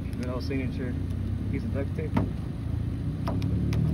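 A banana peel rubs against a car's painted hood.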